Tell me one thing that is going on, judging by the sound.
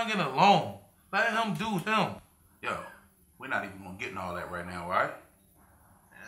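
A second man answers with animation.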